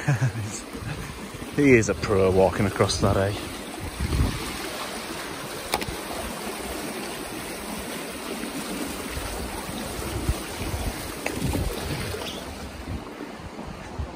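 A fast-flowing stream rushes over rocks.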